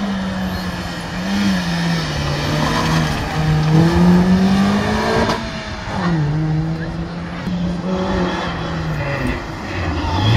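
A small hatchback rally car accelerates out of a hairpin, its engine revving through the gears.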